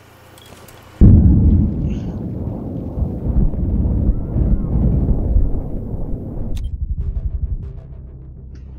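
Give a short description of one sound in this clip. A loud explosion booms and then rumbles on before slowly dying away.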